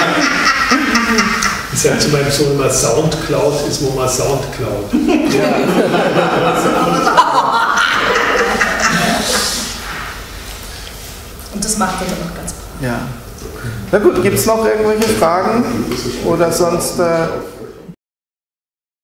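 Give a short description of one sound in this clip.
A man speaks at length to a small audience, heard from across a room.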